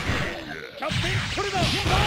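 Electric bolts crackle loudly.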